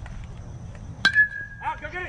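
A metal bat hits a ball with a sharp ringing ping.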